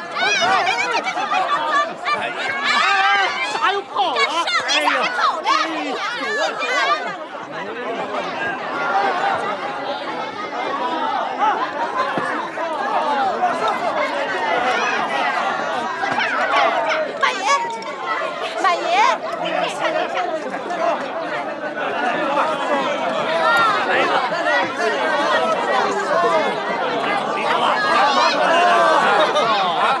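A crowd of men and women shout and chatter excitedly outdoors.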